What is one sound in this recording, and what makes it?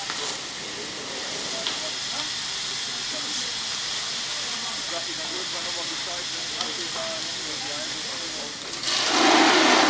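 Flames crackle now and then.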